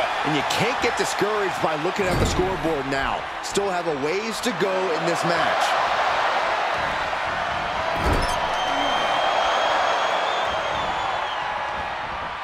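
A large crowd cheers and roars steadily in an echoing arena.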